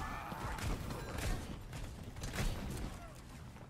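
Explosions boom in quick bursts.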